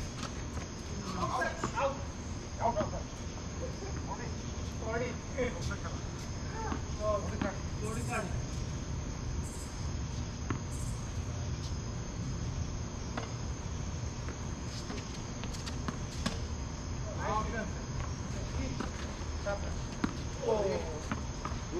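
Men call out to each other on an outdoor court.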